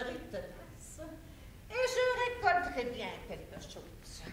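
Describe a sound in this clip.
A woman speaks theatrically, her voice rising high.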